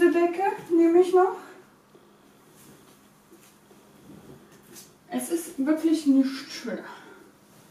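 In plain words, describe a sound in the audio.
A blanket rustles as it is shaken out.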